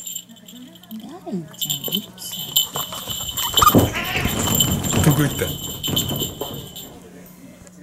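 Cats scuffle and thump against the floor.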